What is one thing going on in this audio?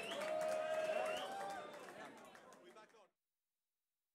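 A rock band plays live music and quickly fades out.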